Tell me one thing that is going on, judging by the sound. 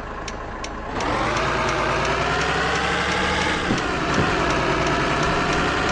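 A truck engine roars louder as the truck pulls away.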